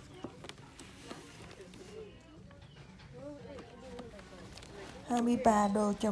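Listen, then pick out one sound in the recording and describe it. A hand rubs and taps a plastic-wrapped toy box.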